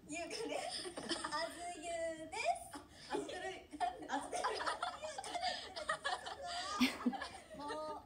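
A young woman speaks cheerfully and close up into a microphone.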